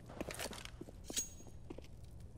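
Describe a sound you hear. Rifle gunfire rings out in short, sharp bursts.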